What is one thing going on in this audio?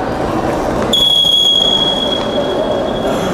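A referee blows a sharp whistle in a large echoing hall.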